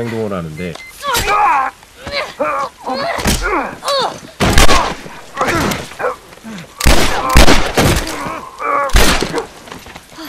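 Heavy blows and thuds ring out in a scuffle.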